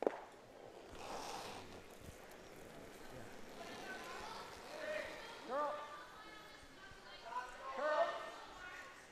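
Brooms sweep briskly across ice.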